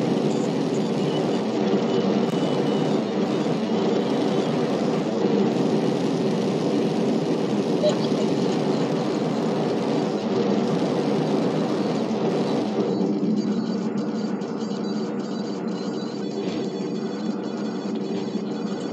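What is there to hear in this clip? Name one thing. A jetpack roars steadily.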